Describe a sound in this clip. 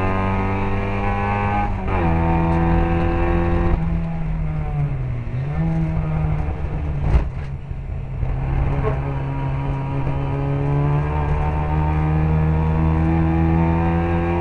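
A racing car engine roars close by, its pitch rising and falling as it shifts gears and brakes into corners.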